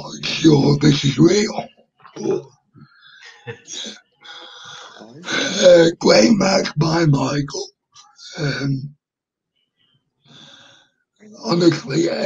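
A young man talks with animation into a microphone, close up.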